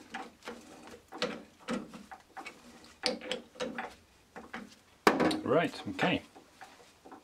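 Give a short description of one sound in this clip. Metal parts click and clatter as a lathe chuck is tightened by hand.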